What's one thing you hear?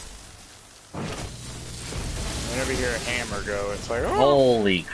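An electric blast crackles and hisses.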